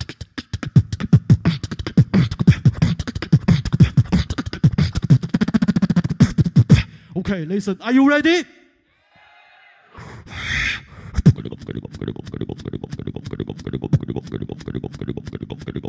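A young man beatboxes fast, punchy rhythms into a microphone through loudspeakers.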